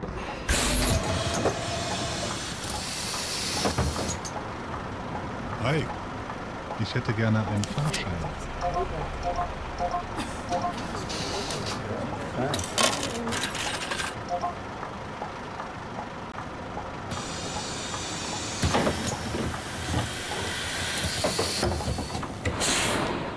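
A bus engine hums steadily.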